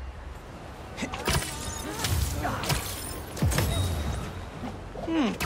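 Quick whooshes and sharp snaps come as a figure swings through the air.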